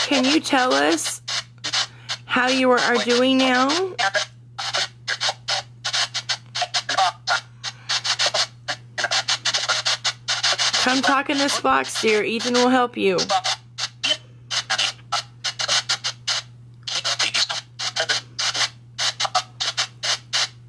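A small speaker plays choppy, rapidly chopped bursts of crackling sound.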